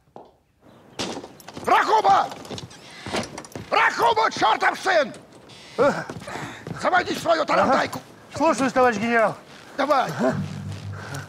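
A man shouts and struggles outdoors.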